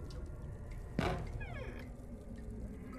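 A wooden door creaks slowly open.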